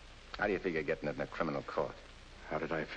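A young man speaks earnestly, close by.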